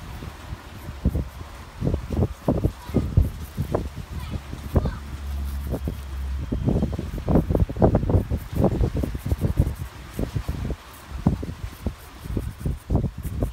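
A pencil scratches lightly across a block of wood.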